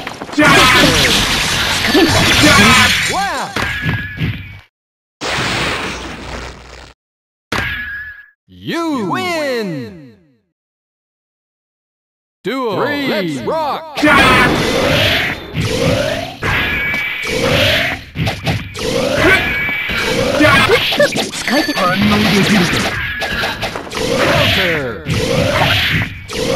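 Fighting game hits and slashes crack sharply, one after another.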